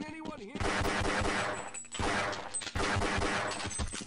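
Pistol shots fire in quick bursts.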